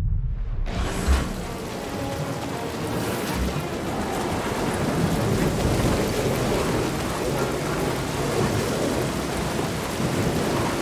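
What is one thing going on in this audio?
Rain and strong wind roar steadily outdoors.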